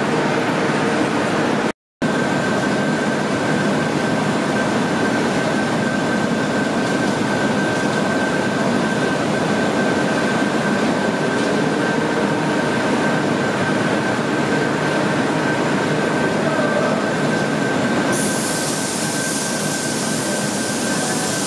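Industrial machinery rumbles and whirs loudly and steadily, with a faint high whine.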